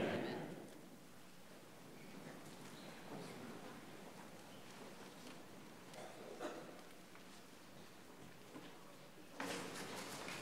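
A crowd shuffles and sits down.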